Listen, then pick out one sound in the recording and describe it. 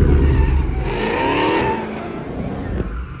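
A car engine revs loudly and roars past.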